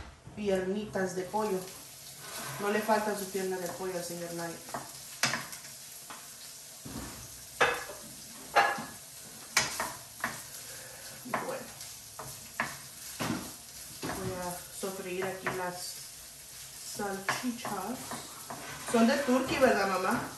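A spatula scrapes and clinks against a pan.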